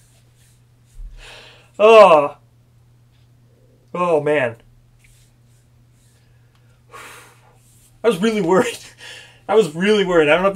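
A young man talks and exclaims with animation, close to a microphone.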